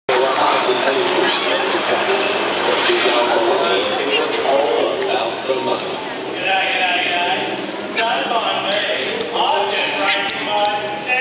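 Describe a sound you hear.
A man speaks with animation over a loudspeaker outdoors.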